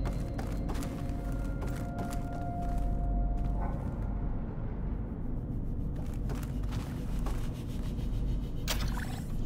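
Footsteps thud on a metal floor.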